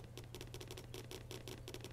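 A knife chops vegetables on a board.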